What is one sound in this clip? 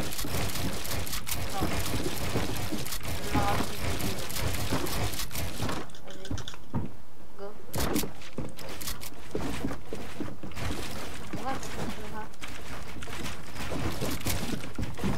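Keys on a mechanical keyboard clatter rapidly.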